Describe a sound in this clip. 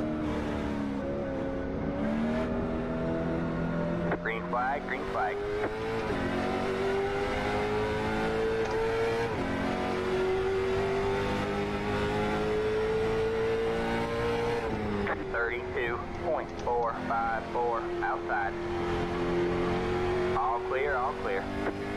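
A racing car engine drones steadily, rising and falling in pitch as it shifts gears.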